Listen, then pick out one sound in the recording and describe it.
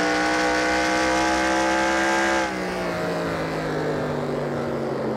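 A race car engine roars at high revs, then drops lower as the throttle eases off.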